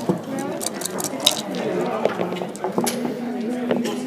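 Dice rattle and clatter onto a board.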